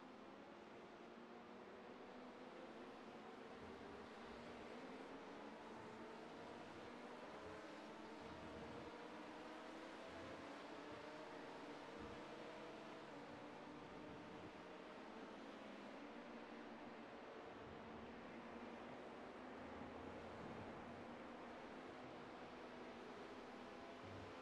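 A racing car engine drones steadily, shifting in pitch through the corners.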